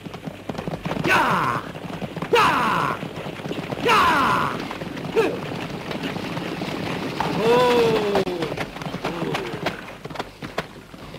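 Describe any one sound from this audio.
Horses' hooves thud and clatter on the ground.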